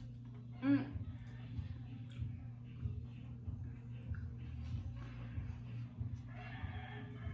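A young woman chews and smacks her lips.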